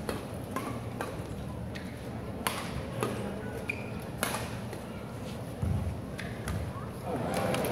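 Rackets strike a shuttlecock with sharp pops in a large echoing hall.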